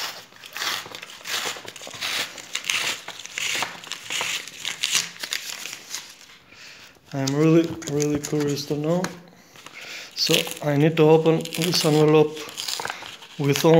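A paper mailer crinkles and rustles as a hand handles it.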